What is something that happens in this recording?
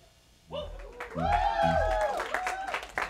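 A drum kit plays with cymbal crashes and hits.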